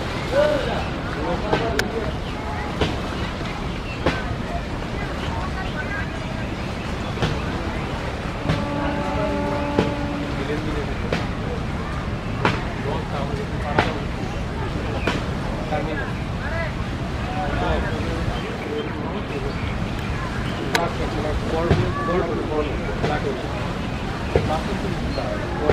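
A diesel passenger ferry's engine rumbles low across water.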